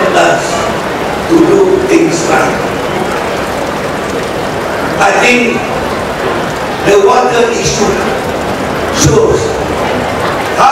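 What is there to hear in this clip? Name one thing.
A middle-aged man gives a speech through a microphone and loudspeakers, in bursts with pauses.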